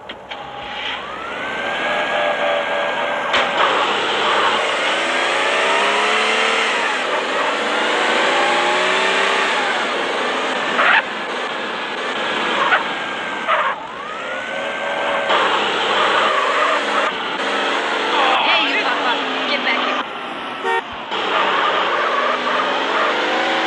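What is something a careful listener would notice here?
A car engine revs up and shifts through the gears.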